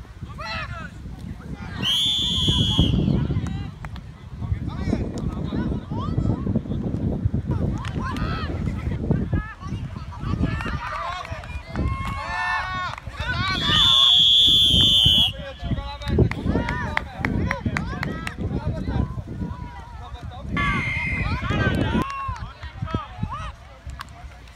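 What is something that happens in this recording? Young players and coaches shout across an open field outdoors.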